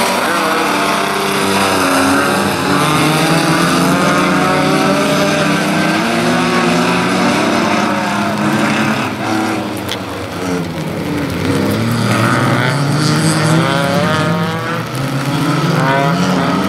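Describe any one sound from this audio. Several car engines roar and rev as cars race around a track.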